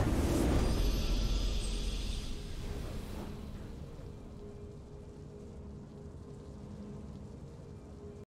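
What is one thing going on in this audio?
A triumphant fanfare of music plays.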